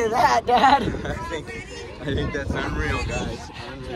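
An older man talks close by.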